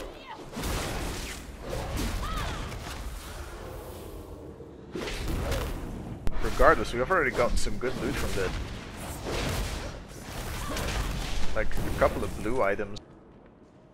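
Weapons clash and strike in combat.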